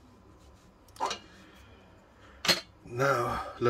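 A metal cup knocks lightly against a tabletop.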